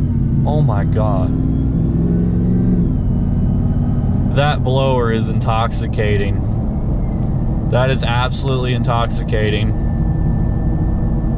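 A car engine rumbles steadily from inside the cabin.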